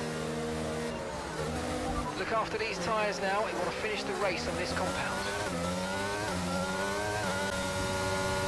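A racing car engine revs up hard through quick gear changes.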